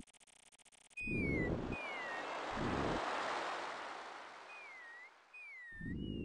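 Waves wash gently onto a shore.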